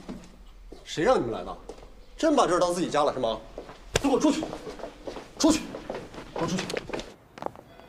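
A man speaks firmly, close by.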